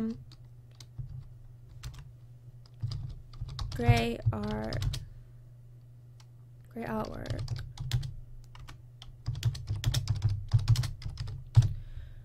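Keys clack rapidly on a keyboard.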